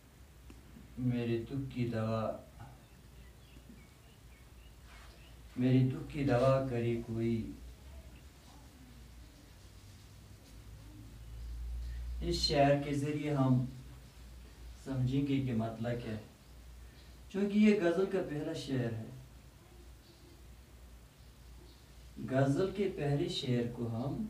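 A man speaks calmly in short phrases nearby, with pauses between them.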